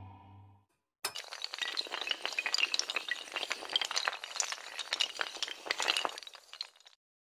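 Dominoes clatter as they topple one after another in a rapid chain.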